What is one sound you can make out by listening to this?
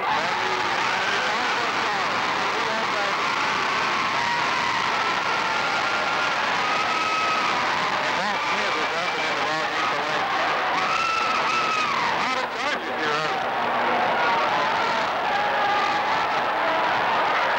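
A large crowd cheers and shouts in a big echoing gym.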